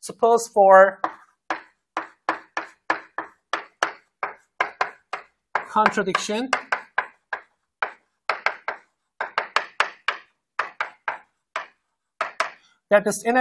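Chalk taps and scrapes against a board in quick strokes.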